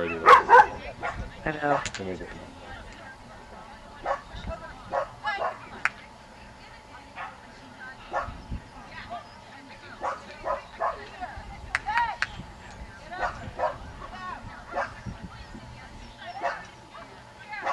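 A woman calls out commands to a dog from across an open field.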